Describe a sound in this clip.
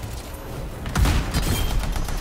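A heavy blast booms.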